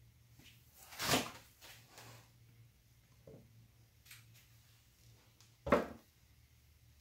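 Gloved hands knock a canvas against a table.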